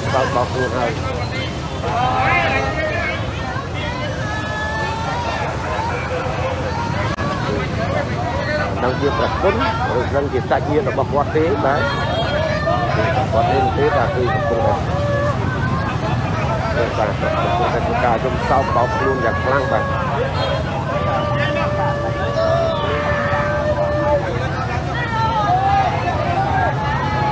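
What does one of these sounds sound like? Several men talk over each other in loud, agitated voices close by.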